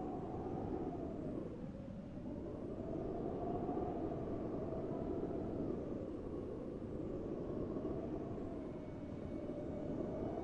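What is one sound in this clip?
Wind howls and gusts steadily outdoors.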